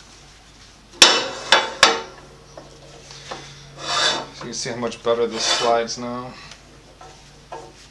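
A metal fence clicks and clanks as it is adjusted.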